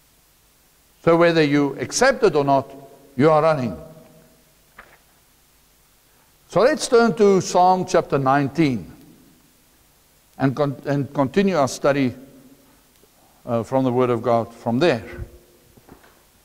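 A middle-aged man speaks calmly through a lapel microphone, with pauses.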